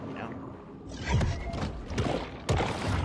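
A shark bites with a crunching splash underwater.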